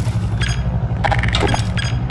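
A weapon is picked up with a short metallic click.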